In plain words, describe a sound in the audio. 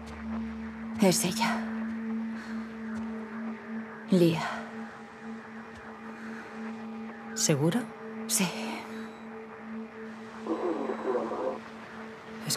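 A young woman speaks softly and tensely, close by.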